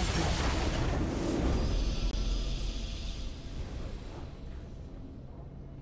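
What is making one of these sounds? A game's victory fanfare swells and fades.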